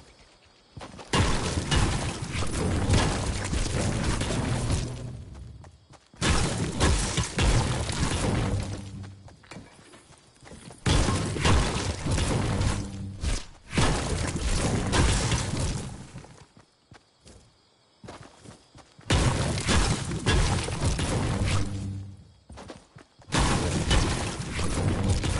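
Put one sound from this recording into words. A pickaxe strikes stone over and over in quick, loud bursts.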